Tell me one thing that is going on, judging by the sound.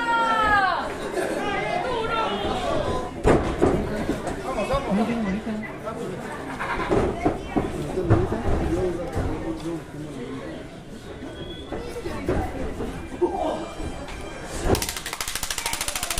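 A crowd chatters and cheers.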